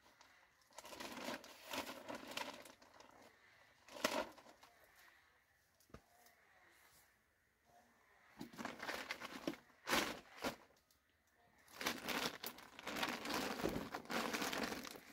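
A plastic tarp rustles and crinkles as it is pulled and handled.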